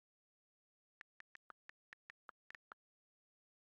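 Keyboard keys tap with short, quick clicks.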